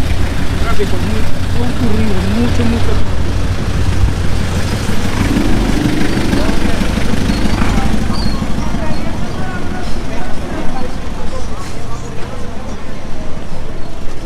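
People chatter in a busy street.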